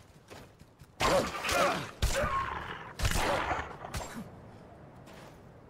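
Wolves snarl and growl close by.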